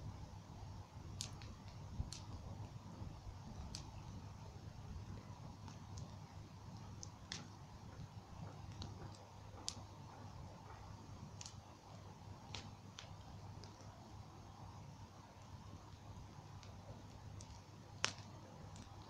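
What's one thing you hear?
A bonfire crackles and pops.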